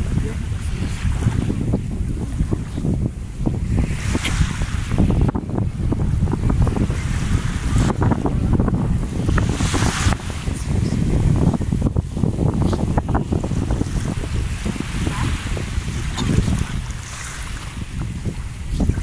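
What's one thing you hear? Wind blows hard against the microphone outdoors.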